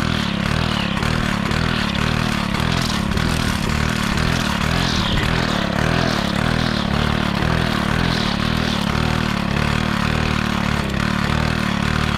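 A string trimmer motor whines steadily close by.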